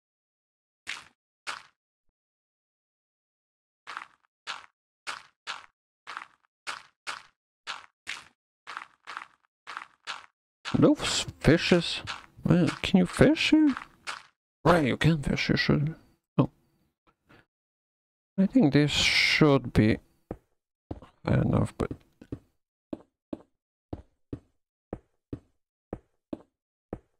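Blocks are placed with short, even thuds.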